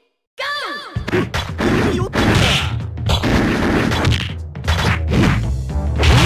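Punches and kicks land with sharp smacks and thuds.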